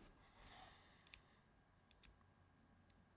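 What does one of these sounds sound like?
A cable clicks into a phone.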